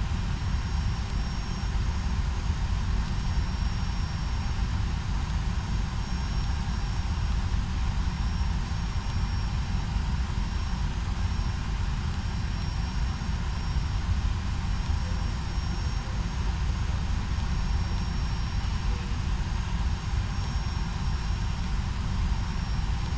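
An aircraft's engines hum with a steady low drone.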